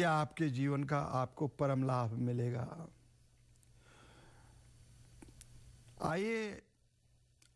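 An elderly man chants in a steady, singing voice through a microphone.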